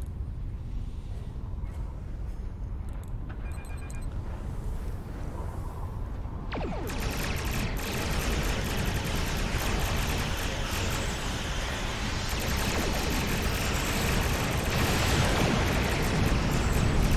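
A spaceship engine hums with a low steady rumble.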